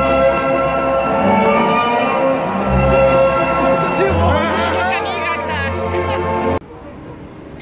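Loud live music plays from a concert stage outdoors.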